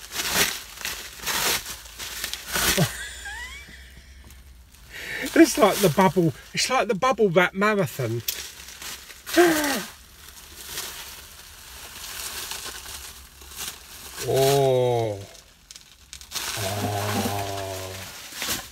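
Plastic bubble wrap crinkles and rustles in a man's hands.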